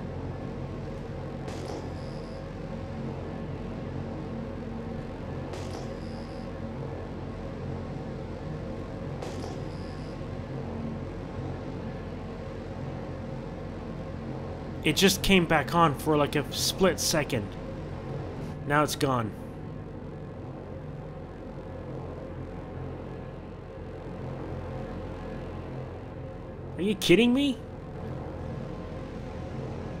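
A spaceship engine hums with a steady low drone.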